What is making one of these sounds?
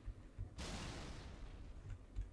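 A plasma blast bursts with a crackling hiss.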